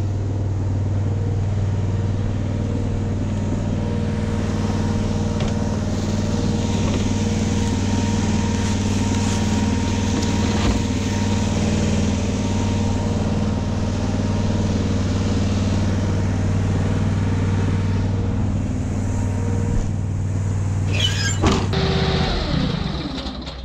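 A tractor engine hums steadily nearby.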